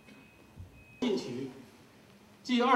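A man speaks into a microphone over loudspeakers.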